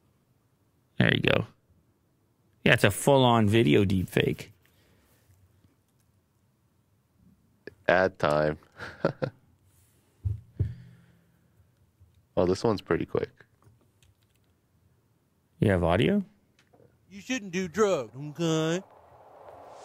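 A man speaks into a close microphone in short bursts, with pauses.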